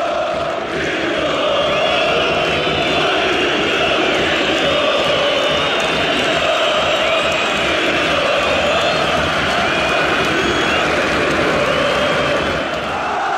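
Shrill whistles blow from the crowd.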